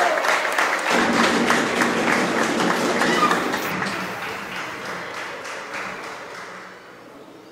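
A group of people applauds loudly.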